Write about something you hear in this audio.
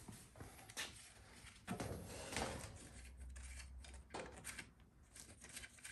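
A metal engine part clatters and knocks as it is handled.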